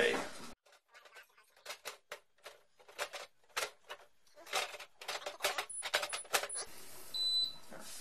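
Plastic clicks and knocks as a panel is handled and fitted.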